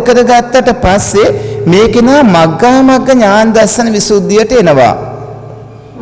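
A man speaks in a sing-song voice, close to a microphone.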